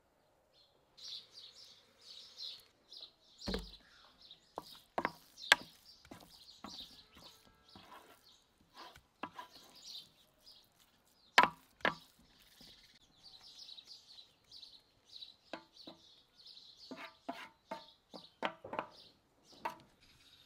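A wooden spoon scrapes and knocks against a metal pan.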